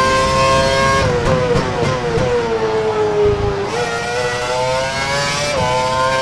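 A racing car engine drops in pitch as the car slows, then climbs again.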